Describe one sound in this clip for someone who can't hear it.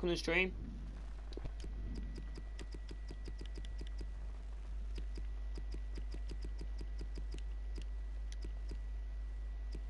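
Soft menu clicks tick in quick succession.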